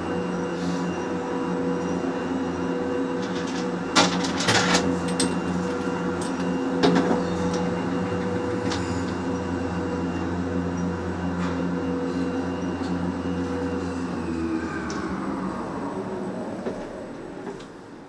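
Ski lift machinery hums steadily, then winds down and fades.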